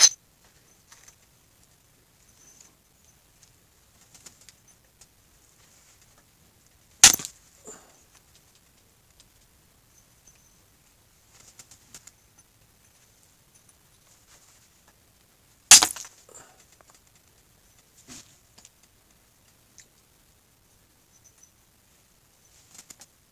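A blade scrapes and shaves softly at wood.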